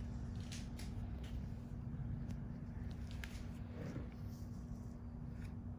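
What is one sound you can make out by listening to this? Rubber gloves rub softly against skin.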